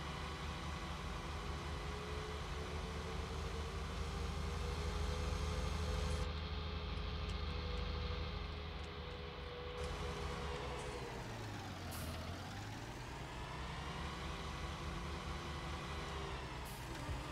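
A tractor engine drones steadily, drops low as it slows and then revs up again.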